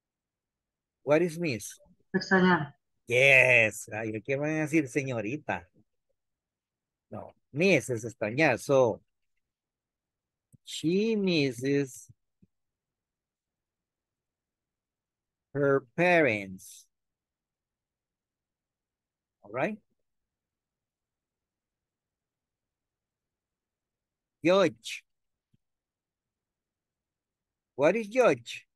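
A man speaks calmly over an online call, in short bursts with pauses.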